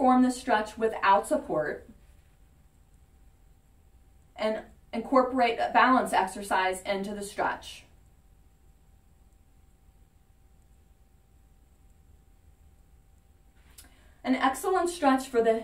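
A woman speaks calmly and clearly, close by, explaining in pauses.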